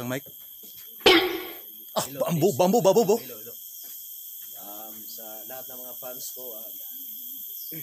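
A young man performs loudly with his voice into a microphone, heard through a loudspeaker.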